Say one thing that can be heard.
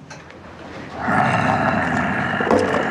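A young man talks softly close by.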